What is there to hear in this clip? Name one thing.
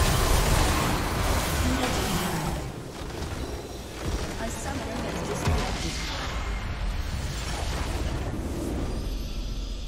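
Game spell effects whoosh and crackle in a battle.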